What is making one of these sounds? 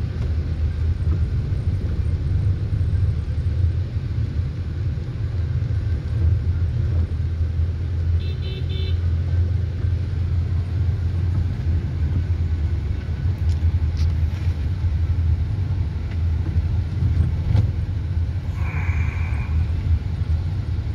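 A car engine rumbles steadily from inside a vehicle.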